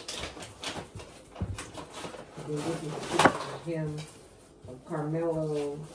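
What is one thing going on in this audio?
A knife cuts into a cucumber on a counter.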